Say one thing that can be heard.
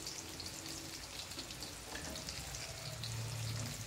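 Wooden chopsticks scrape and tap against a metal frying pan.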